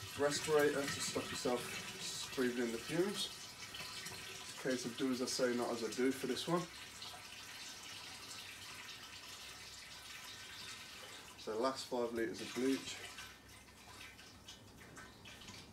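Liquid pours from a plastic jug into a barrel.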